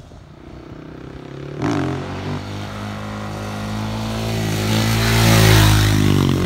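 A motorcycle engine revs loudly as it approaches and passes close by.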